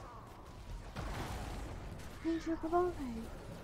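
Gunfire and blasts crackle from a video game.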